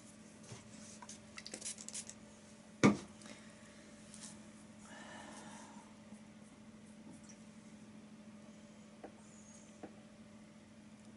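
A paintbrush dabs and brushes softly on a canvas.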